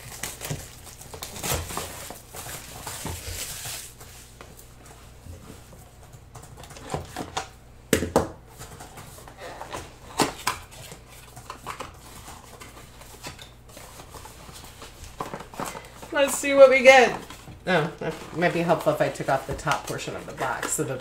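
Cardboard boxes scrape and tap on a table.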